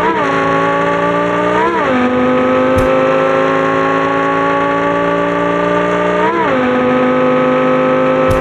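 A sports car engine roars steadily at high speed, rising in pitch with each gear shift.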